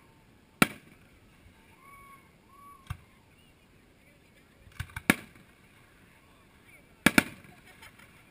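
Fireworks burst with sharp loud bangs, echoing across open ground.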